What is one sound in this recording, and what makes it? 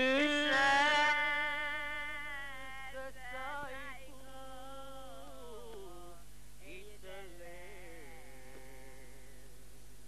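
A man sings loudly in long held notes, then trails off.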